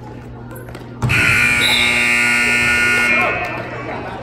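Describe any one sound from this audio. A loud buzzer sounds and stops.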